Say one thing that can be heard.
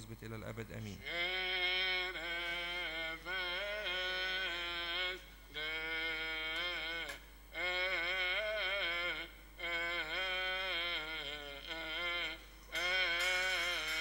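A group of men chant together in an echoing hall.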